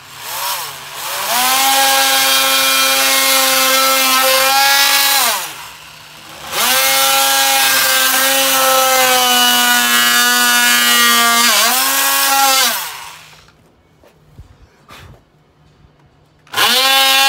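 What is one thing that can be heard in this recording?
A small electric rotary tool whines at high speed as it grinds into wood, in bursts that rise and fall in pitch.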